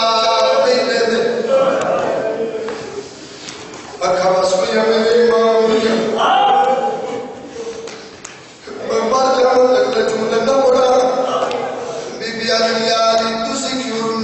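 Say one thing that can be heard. A man sings a mournful chant loudly through a microphone, in long sustained phrases with short pauses.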